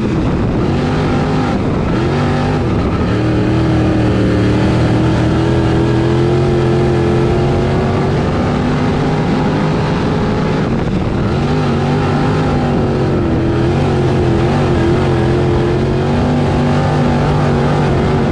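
Tyres grind on a dirt track.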